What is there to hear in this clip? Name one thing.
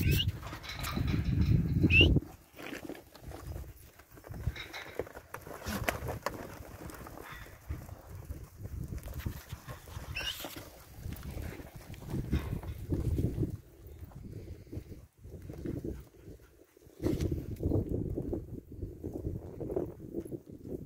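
Cattle hooves trample across dry dirt.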